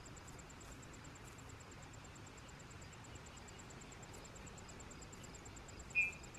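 Wind blows softly across open ground.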